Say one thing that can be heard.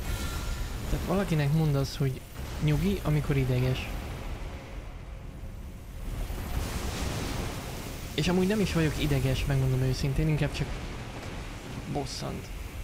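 A young man talks with animation, close to a microphone.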